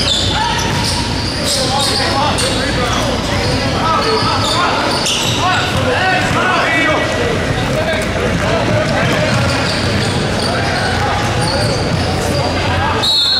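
Young players call out to each other.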